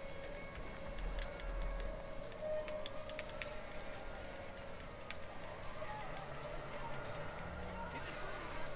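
A bicycle's tyres roll over a road with a soft whir.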